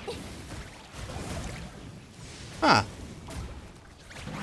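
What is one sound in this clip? Video game spell blasts burst and crackle.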